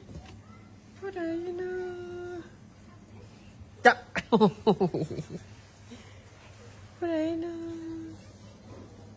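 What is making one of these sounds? A toddler squeals playfully close by.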